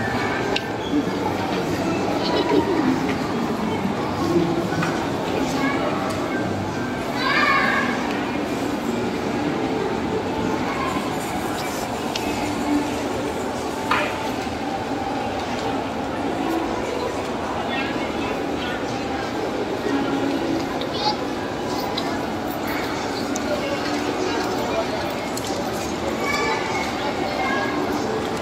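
Small stroller wheels rattle and roll over a tiled floor.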